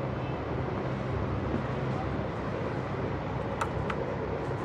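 A plastic cap clicks shut.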